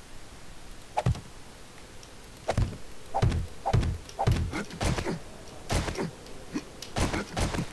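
Footsteps thump and clank on a metal ladder.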